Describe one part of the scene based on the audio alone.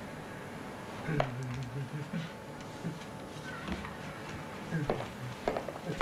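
A sliding cabinet door rattles and knocks.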